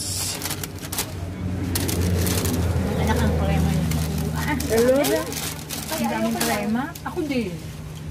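A paper bag crinkles and rustles.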